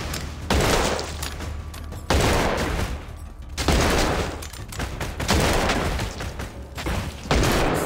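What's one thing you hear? Gunshots crackle in quick bursts.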